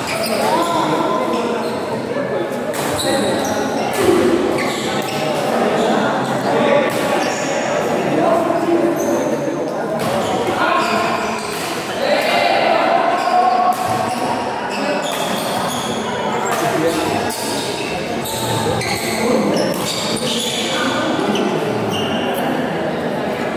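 Young men call out and talk loudly during play.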